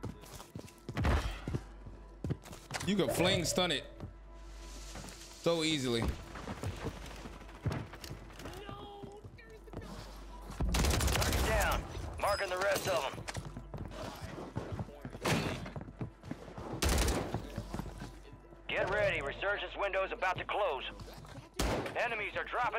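Gunshots from a video game ring out in short bursts.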